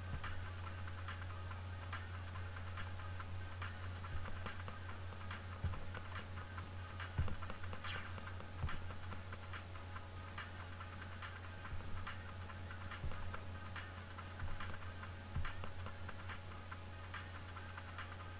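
Short electronic blips and thumps sound as a game character runs and jumps.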